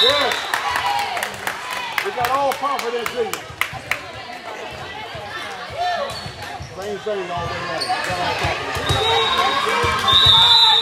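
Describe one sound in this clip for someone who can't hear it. A crowd of young girls cheers and shouts in a large echoing gym.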